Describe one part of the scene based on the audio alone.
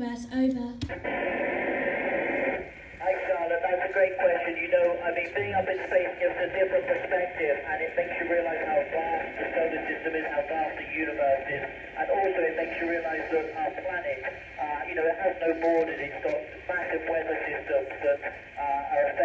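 A man speaks through a loudspeaker in a large hall, sounding thin like a radio link.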